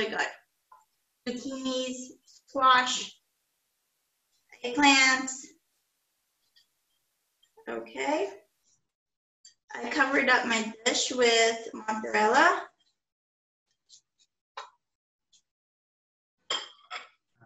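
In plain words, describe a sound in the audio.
A young woman talks calmly close by, in short bursts.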